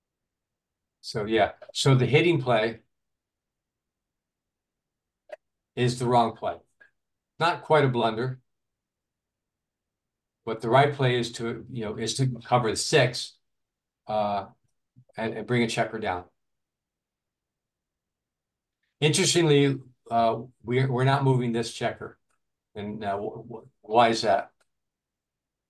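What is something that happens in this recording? An older man speaks calmly into a microphone, heard over an online call.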